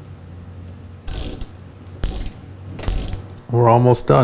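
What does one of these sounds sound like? A ratchet wrench clicks as it tightens a nut.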